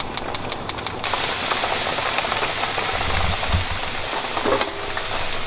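Edamame pods sizzle in a frying pan.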